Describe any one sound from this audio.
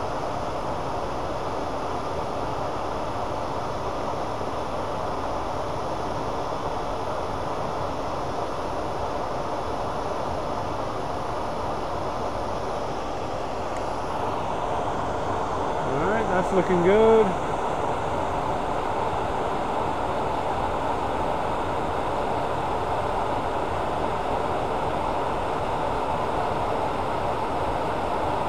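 A lathe motor runs with a steady whirring hum.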